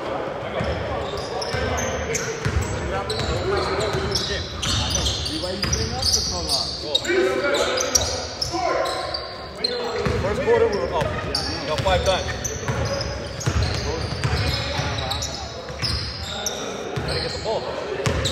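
Young men shout to each other in an echoing hall.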